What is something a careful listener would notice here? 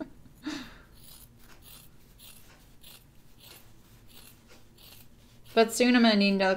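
Scissors snip through fabric.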